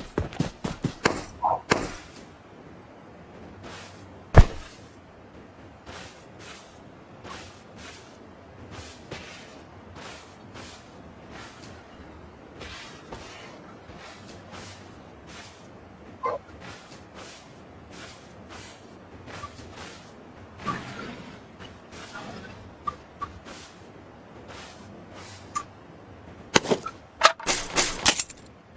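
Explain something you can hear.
Footsteps rustle through tall grass in a steady rhythm.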